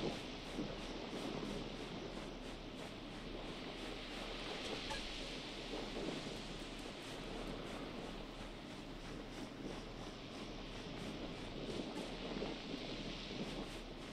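Footsteps patter on sand.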